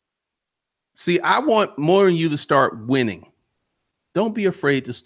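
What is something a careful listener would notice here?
A man speaks calmly and close into a microphone.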